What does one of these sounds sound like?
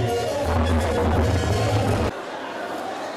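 A crowd of women sings and wails loudly.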